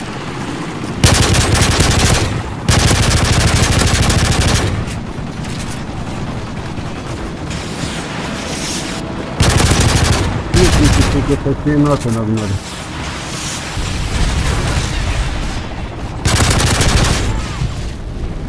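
A rifle fires in loud rapid bursts.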